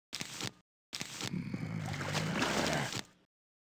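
A short game chime sounds as a plant is placed.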